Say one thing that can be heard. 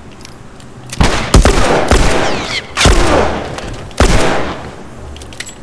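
Loud gunshots ring out and echo.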